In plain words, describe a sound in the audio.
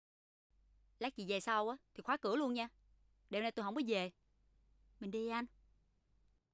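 A young woman speaks in short, tense bursts close by.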